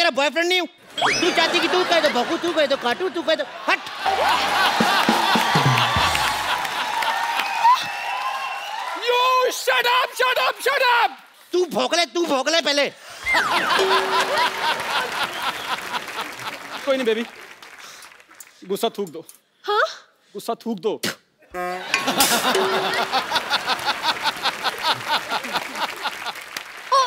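A studio audience laughs and applauds.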